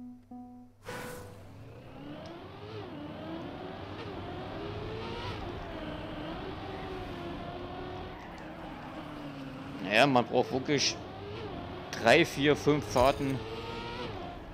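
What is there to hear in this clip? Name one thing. A racing car engine roars and revs, rising and falling in pitch.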